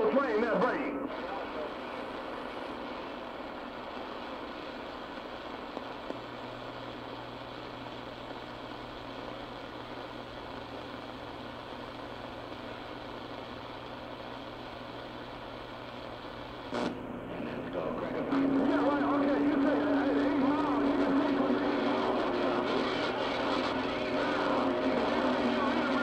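Warbling, whistling tones come through a radio's static.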